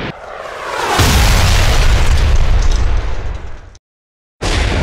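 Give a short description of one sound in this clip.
Fire roars from a loud blast.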